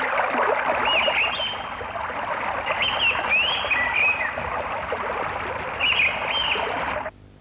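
A small bird chirps in short bursts.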